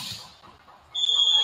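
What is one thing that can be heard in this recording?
A referee blows a shrill whistle.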